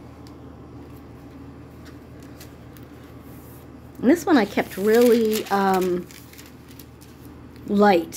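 A page of a book turns with a soft papery rustle.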